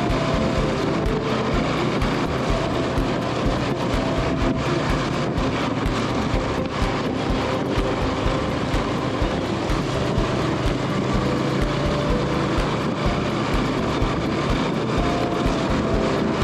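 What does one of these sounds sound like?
Wind rushes past in a loud roar.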